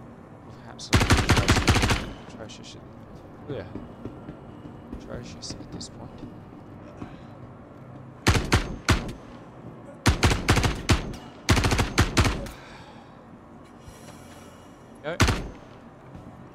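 Rapid bursts of automatic gunfire ring out loudly.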